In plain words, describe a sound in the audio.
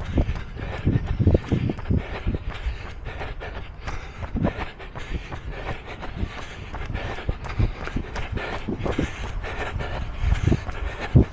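Wind gusts and rumbles outdoors, buffeting close by.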